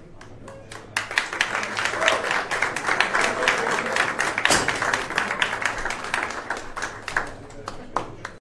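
A crowd cheers and claps loudly in a large room.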